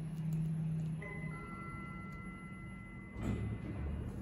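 An elevator chime rings with a steady electronic tone.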